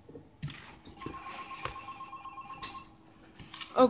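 Electronic game tones play from small desktop speakers.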